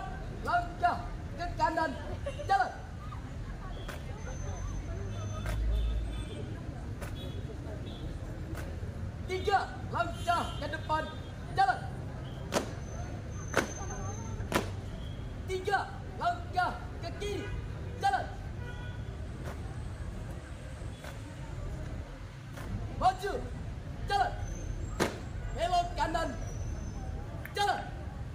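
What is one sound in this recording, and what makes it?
A man shouts drill commands loudly outdoors.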